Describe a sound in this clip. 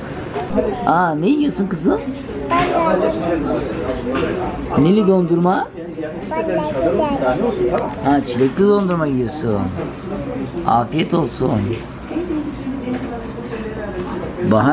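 A little girl babbles and talks close by.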